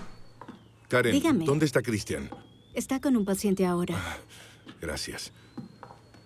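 A man talks on a phone with agitation, close by.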